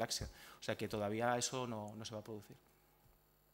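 A man speaks briefly through a microphone in a hall.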